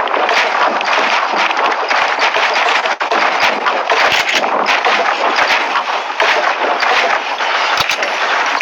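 Wooden walls and stairs clack into place in quick succession.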